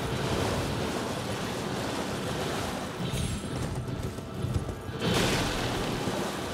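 A horse gallops through shallow water, splashing loudly.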